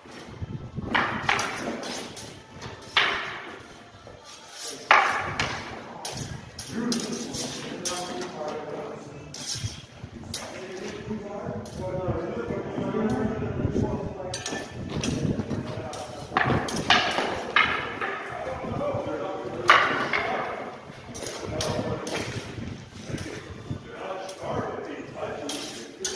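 Wooden sticks clack together in a stick fight, echoing under an underpass.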